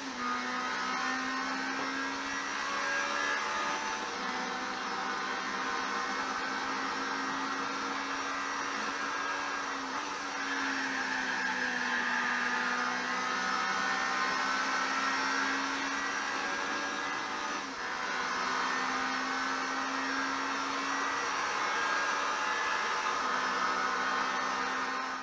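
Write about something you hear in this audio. A racing car engine roars at high revs, shifting gears as it speeds along.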